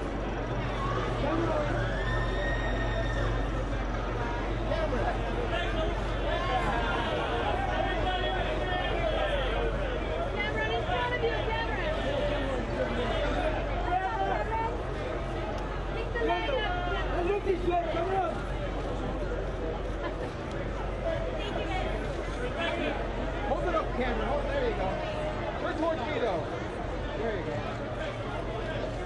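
A crowd of men and women chatter and call out nearby.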